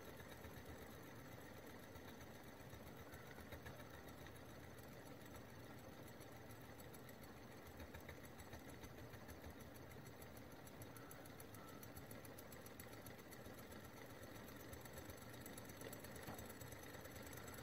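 A small engine runs with a fast, steady clicking and whirring.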